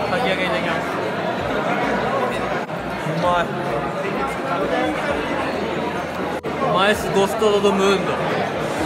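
A crowd of men chatter.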